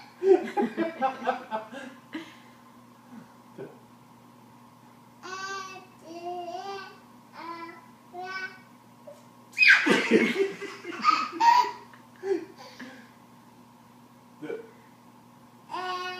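A toddler laughs and squeals up close.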